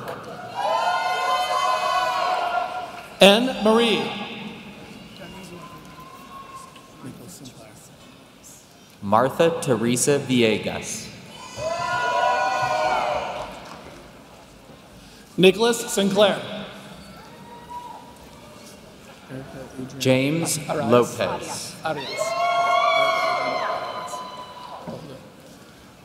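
A woman reads out names slowly and clearly through a microphone in a large echoing hall.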